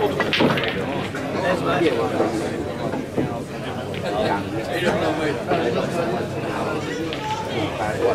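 A man talks quietly with another man.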